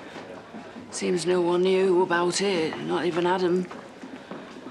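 A woman speaks firmly nearby.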